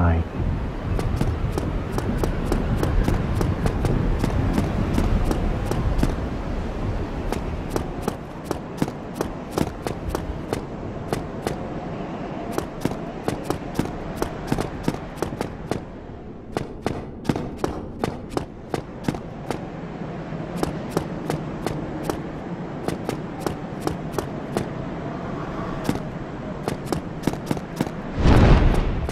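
Bare footsteps patter quickly on stone.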